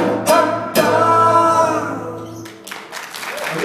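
A band plays acoustic guitars and drums, then stops.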